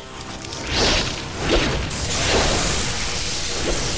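A huge creature roars loudly.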